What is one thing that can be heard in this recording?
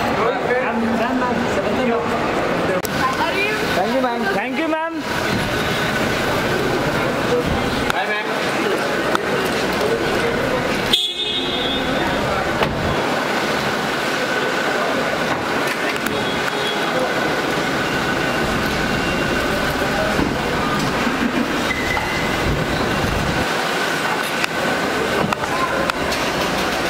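A crowd of men call out and talk over one another close by.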